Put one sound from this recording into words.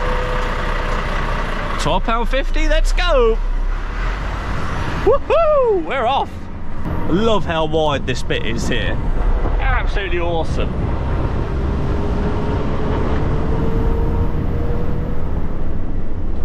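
A truck engine hums steadily as the truck pulls away and drives along.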